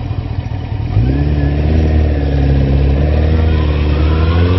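A motorcycle engine revs up sharply and keeps roaring.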